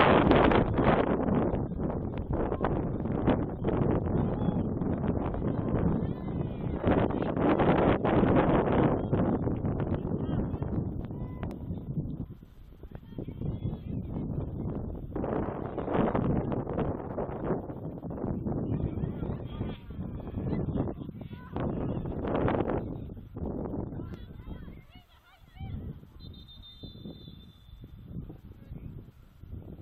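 Players call out to each other across an open field in the distance.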